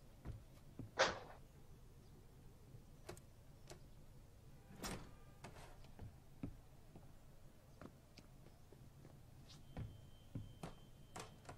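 Metal clicks and clacks as equipment is handled.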